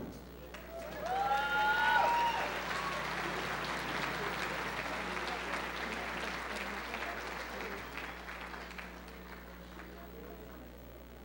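A large crowd cheers and applauds, then slowly fades.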